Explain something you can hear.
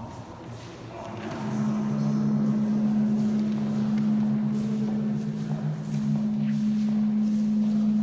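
Footsteps shuffle across a hard floor as a group walks.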